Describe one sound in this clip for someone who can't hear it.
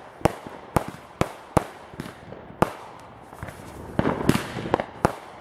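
Fireworks burst overhead with sharp, echoing bangs.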